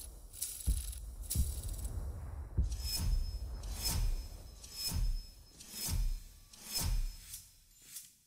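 Game award sounds thump and chime one after another.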